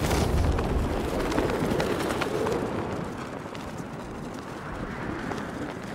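Heavy tank engines rumble low and steadily.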